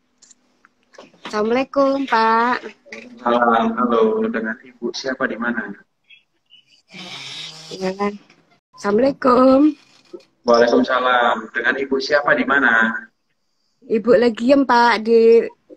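An elderly woman speaks with animation over an online call.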